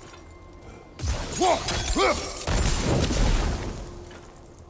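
A crystal shatters with a loud crash and tinkling shards.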